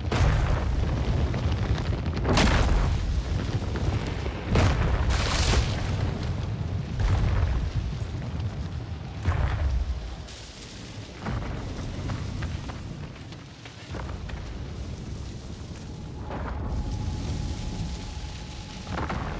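Wind rumbles and gusts steadily outdoors.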